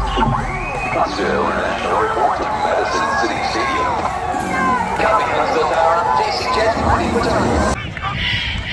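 Excited children shout and cheer close by.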